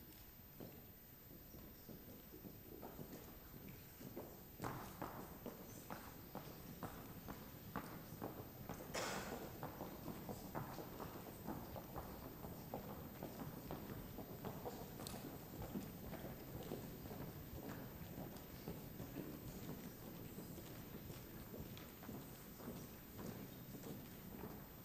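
An audience murmurs quietly.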